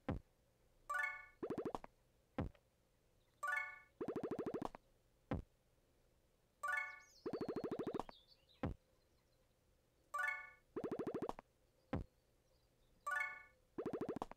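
Bright electronic game chimes and buzzing tones play in a repeating cycle.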